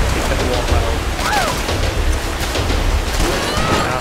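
Water rushes and splashes loudly.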